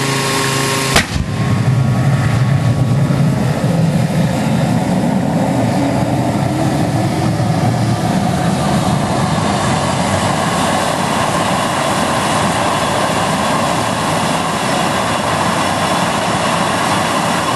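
A small jet turbine roars as it lights.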